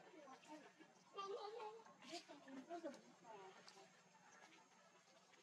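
Dry leaves rustle on the ground as small monkeys tussle.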